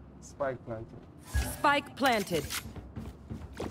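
A blade is drawn with a short metallic scrape.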